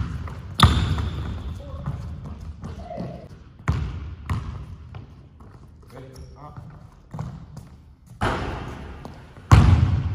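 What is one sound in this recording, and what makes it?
A basketball bounces on a wooden court, echoing through a large hall.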